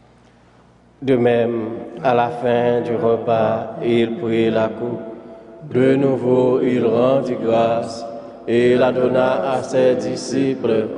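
A man chants into a microphone with a steady, sung voice.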